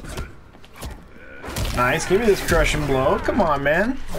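Heavy punches land with loud thuds.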